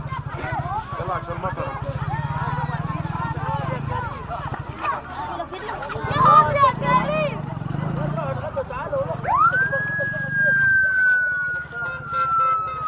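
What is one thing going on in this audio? Boys and men talk and shout outdoors.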